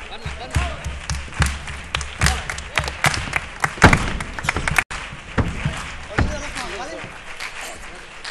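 Performers stamp and clap rhythmically on a stage.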